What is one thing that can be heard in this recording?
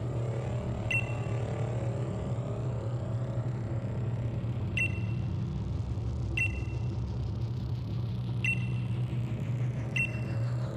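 A short electronic blip sounds several times.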